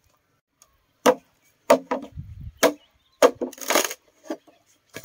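A machete chops into bamboo with sharp knocks.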